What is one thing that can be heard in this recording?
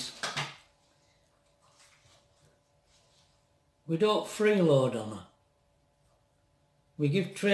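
An elderly man speaks calmly and close by, with pauses, as if on an online call.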